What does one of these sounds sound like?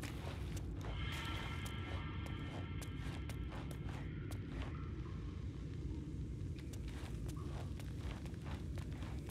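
Footsteps tread softly on rock.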